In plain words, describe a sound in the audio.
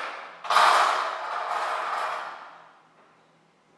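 A heavy door clunks open with a loud echo.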